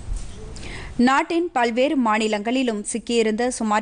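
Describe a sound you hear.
A young woman reads out calmly and clearly into a microphone.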